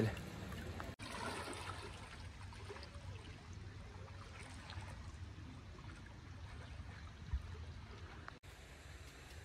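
Water splashes softly as a man swims.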